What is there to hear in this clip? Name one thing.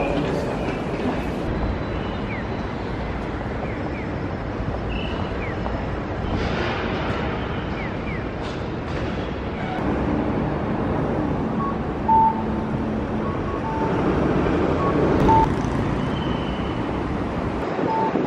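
Steady city traffic rumbles.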